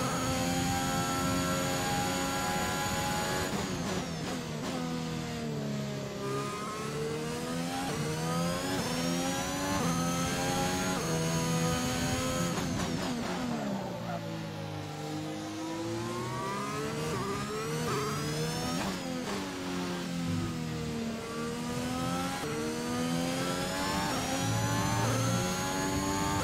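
A racing car engine screams, its pitch dropping sharply under braking and climbing again as it speeds up through the gears.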